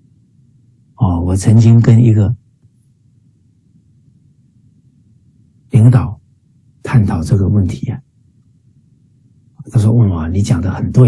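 A middle-aged man speaks with animation, in short bursts, heard through an online call.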